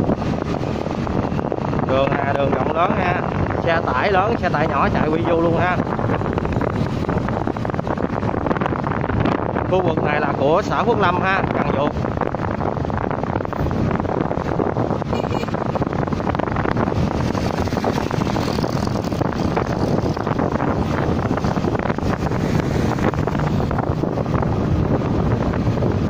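A motorbike engine hums steadily nearby.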